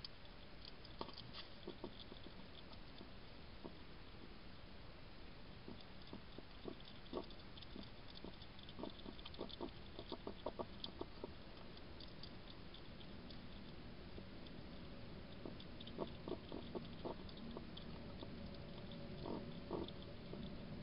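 A hedgehog chews and crunches food with soft clicks.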